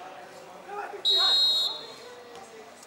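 A referee's whistle blows once, sharp and short.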